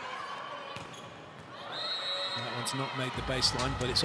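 A volleyball is smacked hard.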